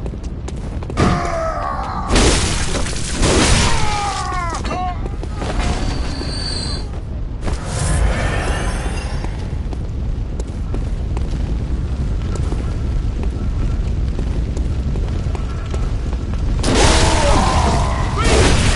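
A blade slashes and strikes a creature.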